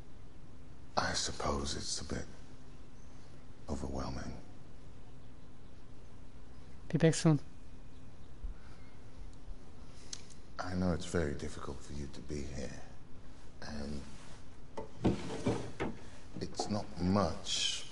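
A man speaks calmly in a deep voice.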